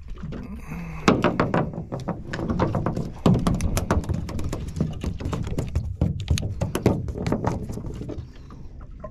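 A fish flaps and thumps on the floor of a boat.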